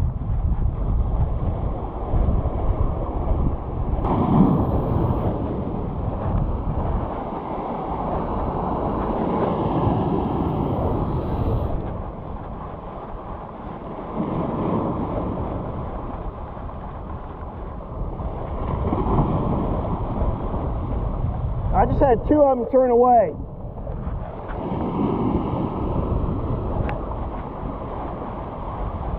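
Wind blows roughly past outdoors.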